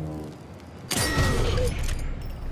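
A silenced pistol fires once with a sharp crack.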